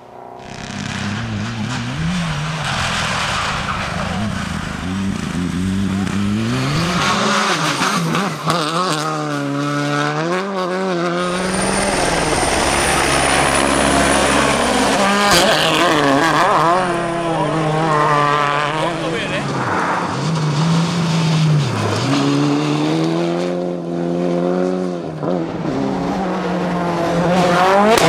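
Rally car engines roar and rev at high speed.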